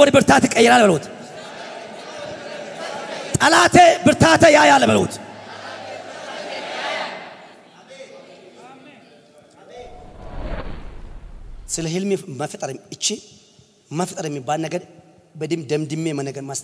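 A man preaches with animation through a microphone and loudspeakers, in pauses and bursts, in a large echoing hall.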